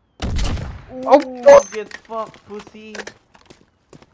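A young man exclaims loudly into a microphone.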